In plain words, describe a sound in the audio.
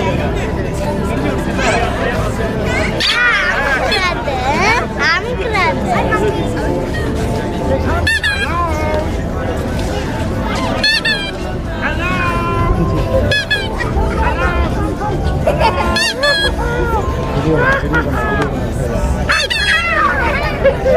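Children laugh and shout excitedly close by.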